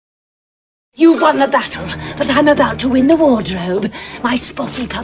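A young man laughs wildly and loudly.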